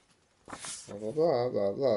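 A sheet of paper rustles in someone's hands.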